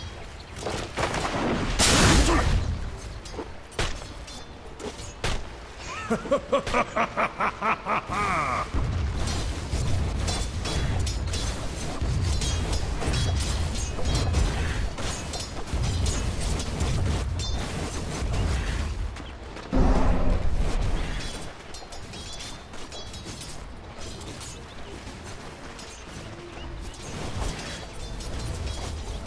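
Weapons clash and spells burst in a fast fantasy battle.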